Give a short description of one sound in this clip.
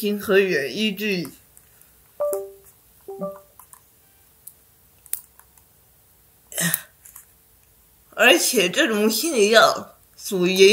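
A young woman speaks calmly and close to the microphone, in short phrases with pauses.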